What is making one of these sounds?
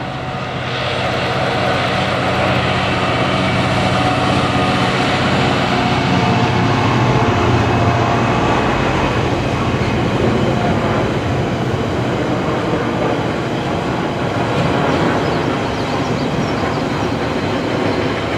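Container wagons rumble and clatter over rails.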